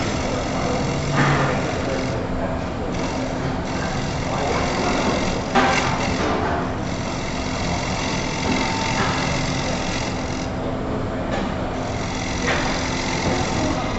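A gouge scrapes and shaves the spinning wood in rough bursts.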